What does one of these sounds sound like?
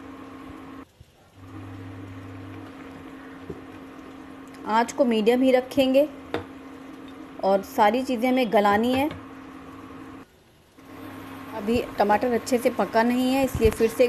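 Food bubbles and simmers in a pan.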